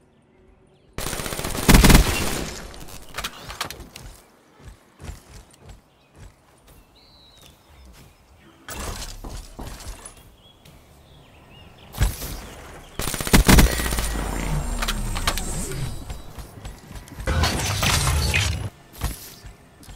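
A rifle fires loud rapid bursts, close by.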